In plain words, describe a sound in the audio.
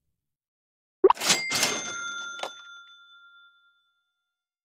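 A bright game chime rings out and slowly fades.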